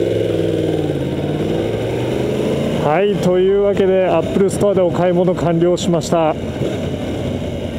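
A motorcycle engine runs with a low, steady hum.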